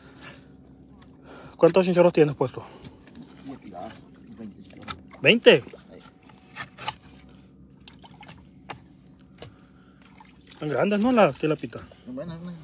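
A knife scrapes scales off a fish with quick rasping strokes.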